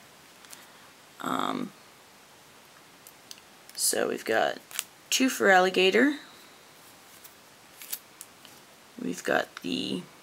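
Playing cards slide and flick against each other in a stack.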